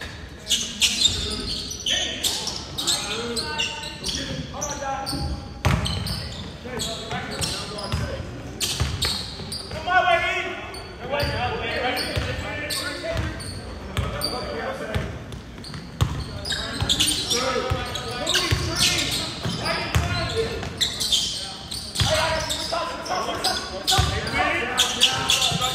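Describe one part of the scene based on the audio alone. A basketball bounces on a hardwood floor.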